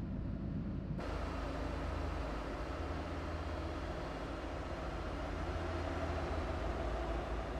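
Traffic and engine noise roar outside on the highway.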